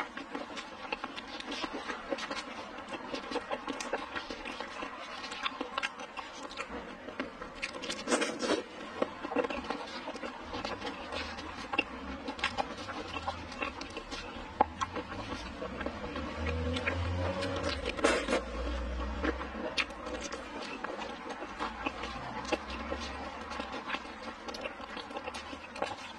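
A young woman chews and slurps wetly close to a microphone.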